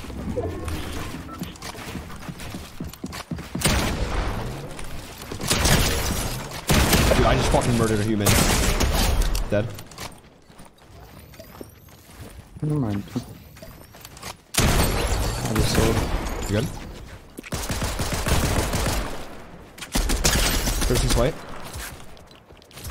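Gunshots and building clatter ring out in a video game.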